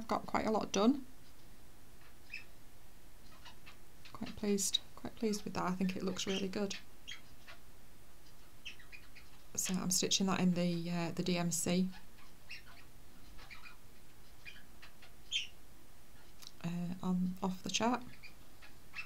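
A middle-aged woman speaks calmly and close to a microphone, in short bursts with pauses.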